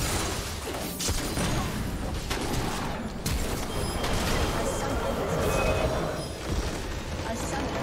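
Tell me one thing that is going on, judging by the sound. Magic spell effects crackle and burst in a busy fight.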